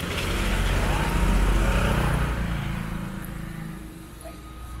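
A motorcycle engine rumbles close by and fades as it rides off.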